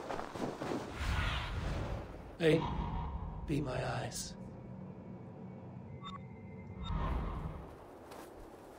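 A large bird's wings whoosh as it flies.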